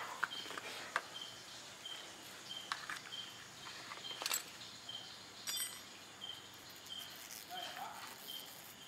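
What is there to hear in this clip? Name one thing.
Small metal parts click and clink against each other.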